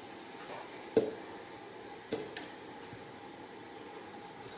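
Soft figs drop into a glass jar with light knocks.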